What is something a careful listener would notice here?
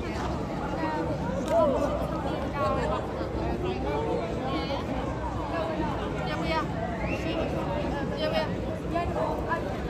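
A group of young women chatter as they walk past.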